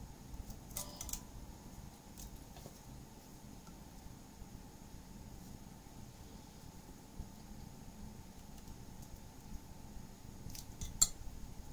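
A blade scrapes and rubs against paper.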